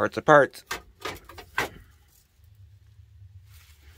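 A loose metal trim plate rattles as a hand picks it up.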